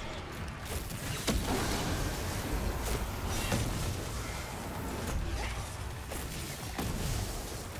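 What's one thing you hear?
Electric blasts crackle and roar.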